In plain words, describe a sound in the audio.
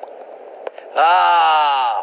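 A man speaks mockingly, close by.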